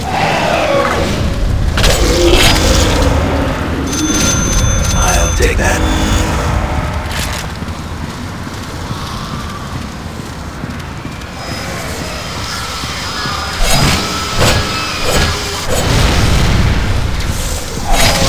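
A zombie groans and snarls.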